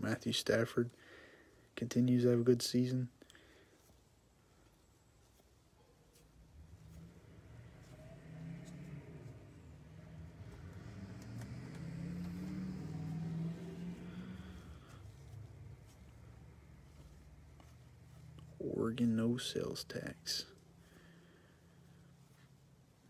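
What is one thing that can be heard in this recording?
Stiff cards slide and flick softly against each other in hands.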